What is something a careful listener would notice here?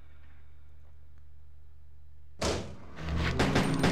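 Heavy metal doors swing open with a loud clang.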